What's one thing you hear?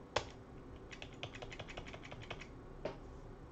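Keys clack on a computer keyboard in a quick burst.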